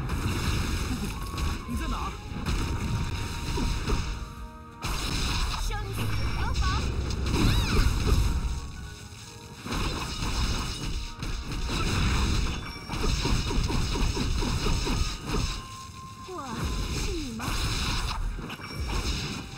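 Game sword strikes and magic blasts crash and whoosh in quick bursts.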